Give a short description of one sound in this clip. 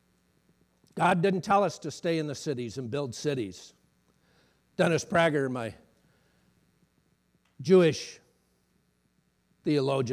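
A middle-aged man speaks calmly through a microphone, with pauses.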